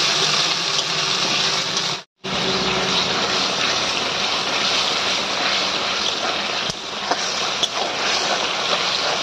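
A metal spatula scrapes against a metal pan.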